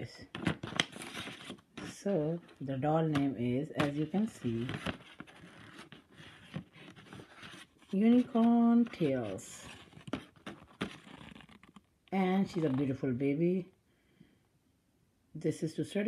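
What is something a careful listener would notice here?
Stiff paper card rustles and scrapes as it is handled.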